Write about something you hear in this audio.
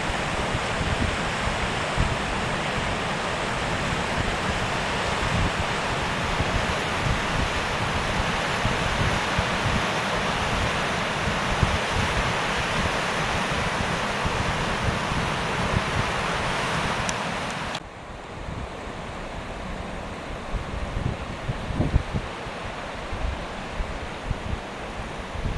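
A shallow river rushes and splashes over rocks close by.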